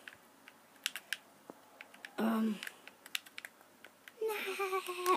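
Short game clicks and taps play from a television speaker.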